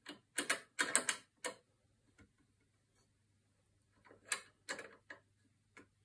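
A metal clamp screw clicks as it is turned by hand.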